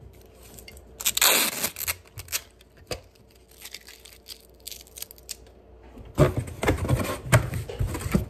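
A phone rustles and knocks as it is handled close up.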